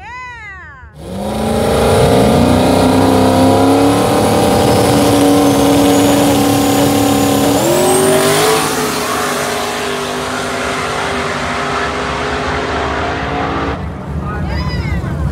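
A nearby car engine rumbles loudly and steadily.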